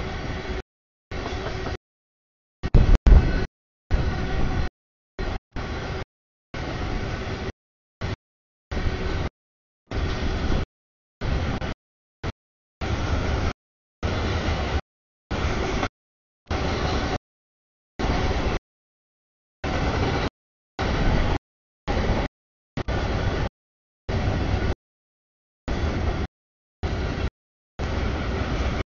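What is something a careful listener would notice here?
A freight train rumbles past at a crossing.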